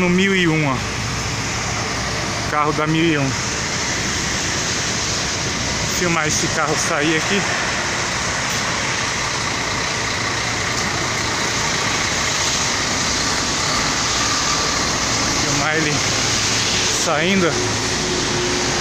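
Rain patters steadily on wet pavement outdoors.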